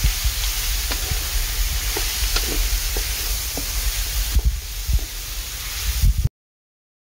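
A spoon knocks and scrapes against a metal pan.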